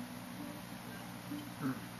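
A man gulps a drink from a can.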